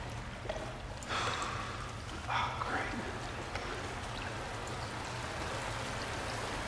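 Water pours and splashes steadily.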